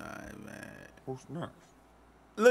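A young man chuckles softly.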